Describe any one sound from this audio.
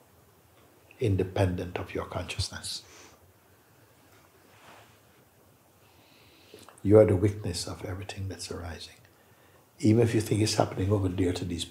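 An elderly man speaks calmly and thoughtfully in short bursts, close by, with pauses between phrases.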